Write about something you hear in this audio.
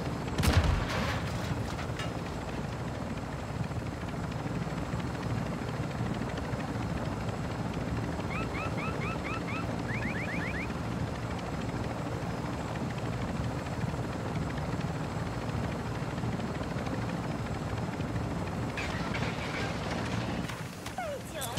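A helicopter's rotor thumps and drones steadily.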